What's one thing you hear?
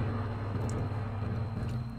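A young man gulps water from a bottle close by.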